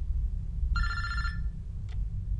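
A phone beeps briefly.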